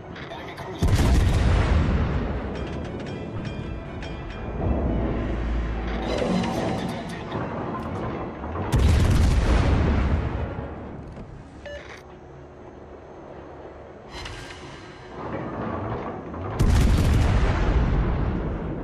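Heavy guns fire with deep, booming blasts that roll away slowly.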